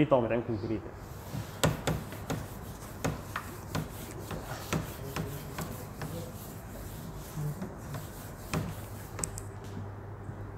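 An eraser rubs and squeaks across a whiteboard.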